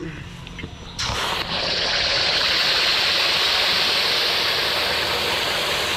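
Sauce sizzles in a hot wok.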